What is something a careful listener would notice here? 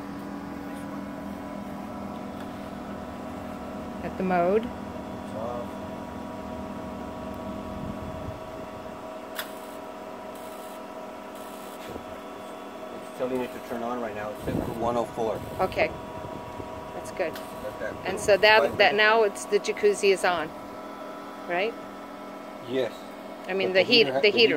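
A pool heater hums steadily.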